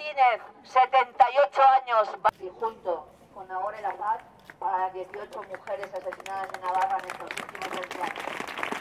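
A woman speaks loudly through a megaphone outdoors.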